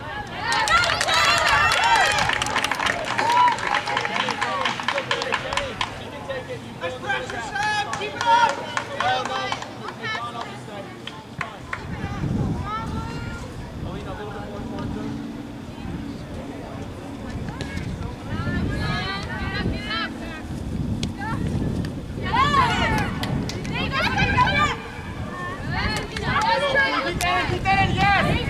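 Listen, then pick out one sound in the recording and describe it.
Young women and girls shout and call out across an open field.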